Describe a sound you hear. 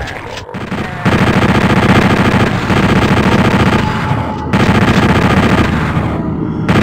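A machine gun fires in a rapid, steady stream of shots.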